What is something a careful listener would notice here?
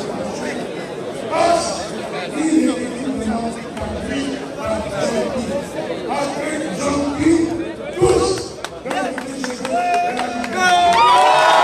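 An elderly man speaks forcefully into a microphone over loudspeakers outdoors.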